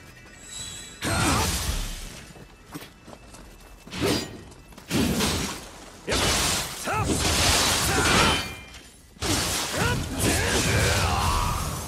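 Swords clash and ring with sharp metallic hits.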